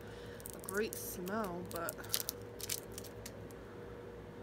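A plastic makeup tube clicks and rattles in a woman's hands.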